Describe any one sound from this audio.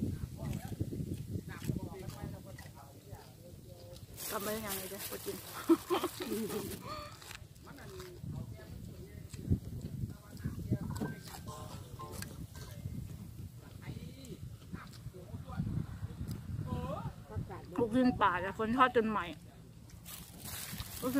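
A young woman chews food close up.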